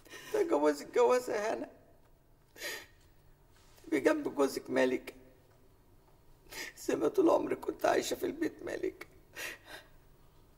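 An older woman speaks in a tearful, pleading voice in short bursts.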